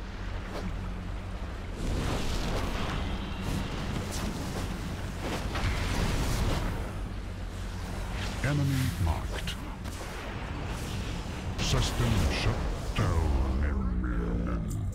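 Fiery spell blasts burst and crackle in a rapid stream.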